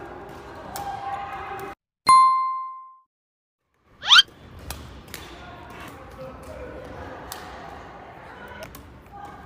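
A badminton racket strikes a shuttlecock with a sharp crack.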